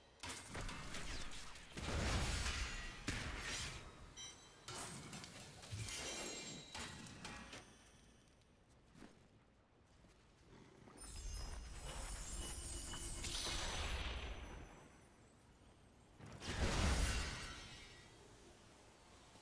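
Game spells burst and crackle in quick flurries.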